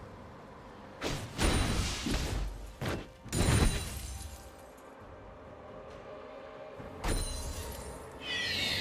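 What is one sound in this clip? Game spell effects whoosh and crackle in short bursts.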